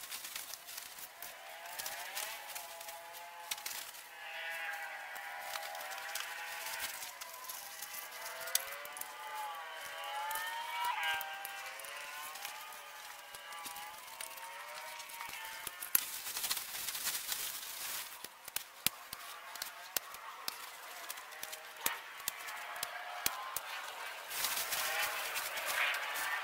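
Tent fabric rustles and crinkles.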